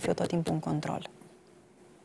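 A young woman speaks calmly into a microphone, close by.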